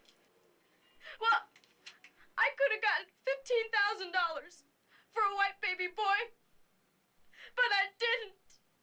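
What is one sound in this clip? A young woman speaks close by, upset and pleading.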